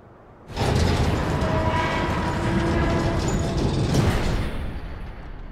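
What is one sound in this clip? Large heavy gates swing open with a loud rumbling rush.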